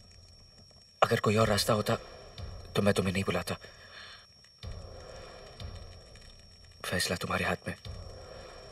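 A man speaks tensely into a phone, close by.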